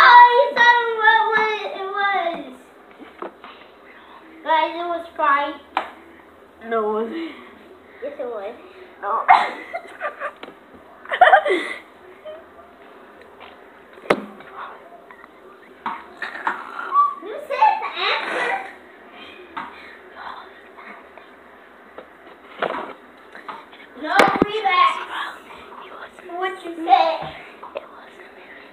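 A young girl talks and laughs close to the microphone.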